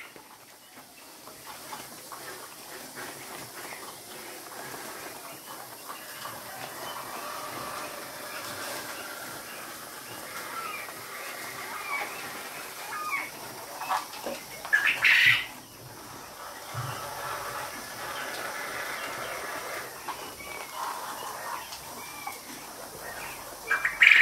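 Many caged birds chirp and cheep continuously.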